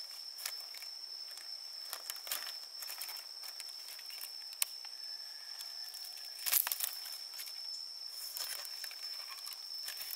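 Bamboo strips rustle and click as they are handled.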